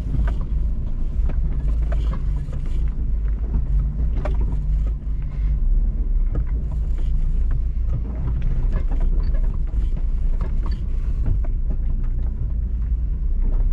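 Rocks and gravel crunch and knock under tyres.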